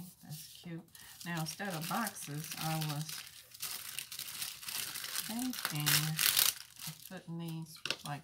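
A clear plastic sheet crinkles as it is handled.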